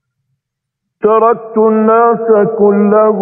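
A man chants in a loud, drawn-out, melodic voice.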